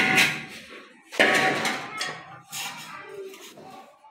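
A trowel scrapes through loose sand and cement.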